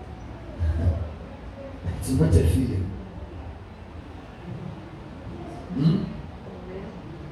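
A man speaks into a microphone in short bursts, heard over loudspeakers in a large room.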